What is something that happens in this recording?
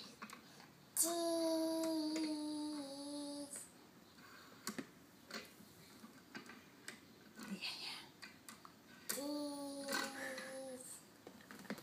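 A young boy sings a long, drawn-out note nearby.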